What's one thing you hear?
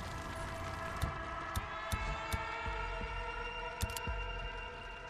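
Soft clicks tick one after another.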